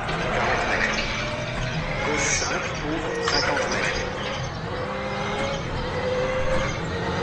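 A racing car engine roars steadily and revs through the gears.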